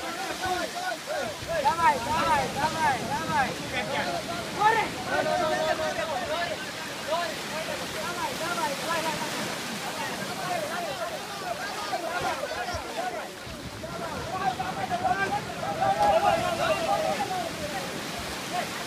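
A group of men chant and shout together in rhythm.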